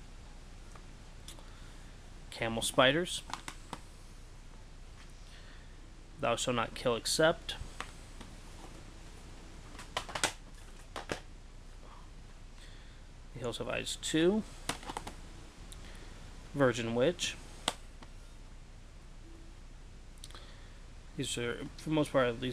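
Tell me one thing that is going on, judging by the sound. Plastic disc cases clack and rattle as they are picked up and handled.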